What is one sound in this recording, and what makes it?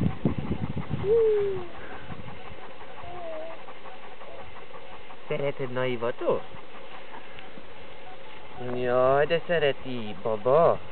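A baby babbles and coos.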